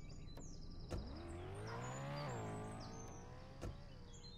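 A car engine revs up as the car reverses, then settles.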